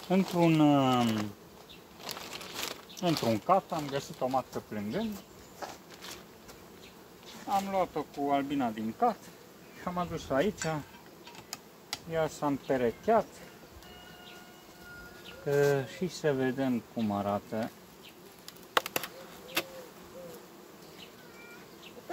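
Bees buzz around an open hive.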